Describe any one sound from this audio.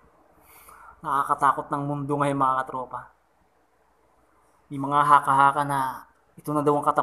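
A young man speaks close to the microphone in short, animated bursts.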